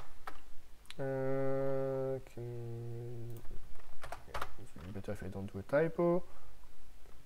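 A man speaks calmly and close to a microphone, drawing out his words.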